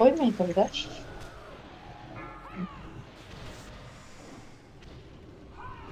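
Flames whoosh and roar from a dragon's breath.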